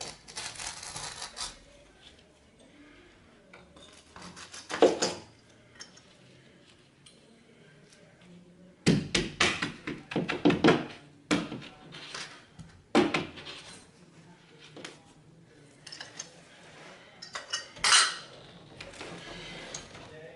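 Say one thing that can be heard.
Tools scrape against a wall close by.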